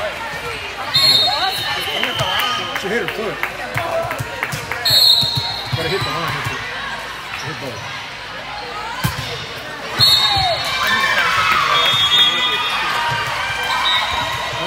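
A referee's whistle blows in short shrill blasts.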